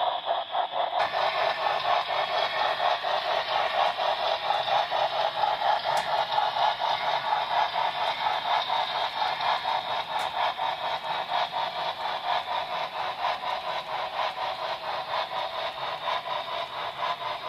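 A model steam locomotive chuffs in a steady, quick rhythm.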